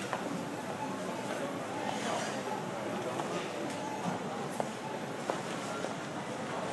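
A shopping cart rolls over a tiled floor.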